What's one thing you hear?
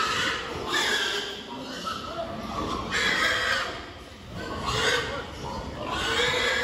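Many pigs grunt and squeal in bursts close by.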